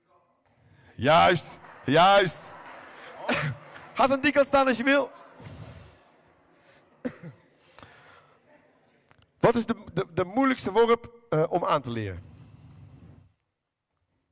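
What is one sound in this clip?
Young men speak in turns into a microphone over loudspeakers in a large echoing hall.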